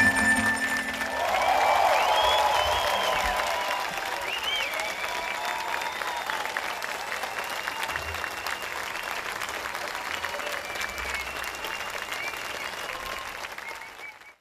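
People in a crowd cheer and whistle.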